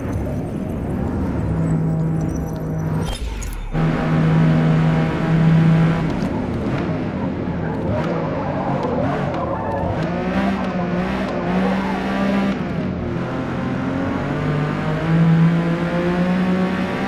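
A racing car engine roars, rising and falling in pitch as the gears change.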